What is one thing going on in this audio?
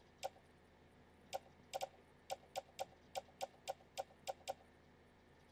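Short interface clicks tick in quick succession.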